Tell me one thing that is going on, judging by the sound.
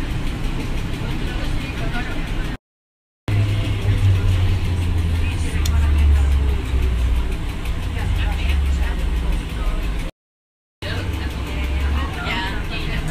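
A bus engine rumbles low and steady while driving.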